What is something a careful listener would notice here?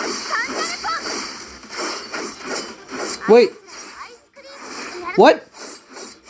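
Blades slash and whoosh in quick bursts.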